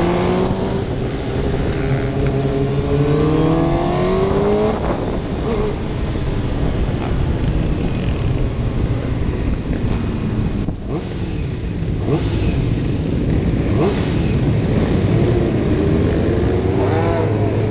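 Other motorcycles rumble and rev nearby.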